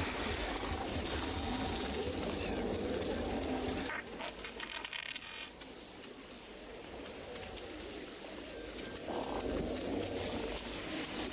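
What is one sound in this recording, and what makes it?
A small creature's paws patter quickly across crunchy snow.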